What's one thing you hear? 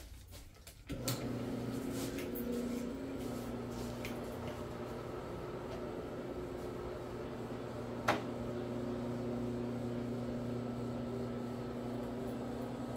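A floor buffer hums steadily as it scrubs the carpet.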